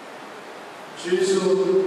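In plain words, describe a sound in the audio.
A man begins singing through a microphone in a large echoing hall.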